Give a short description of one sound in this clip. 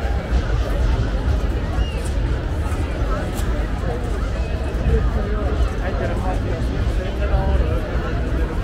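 A large outdoor crowd chatters and shouts throughout.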